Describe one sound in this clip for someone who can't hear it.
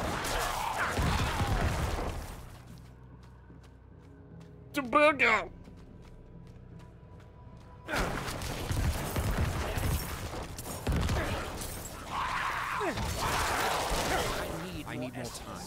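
Fighting sounds from a video game clash and crash with loud bursts.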